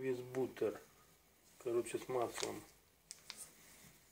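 A plastic food wrapper crinkles as a hand turns it over.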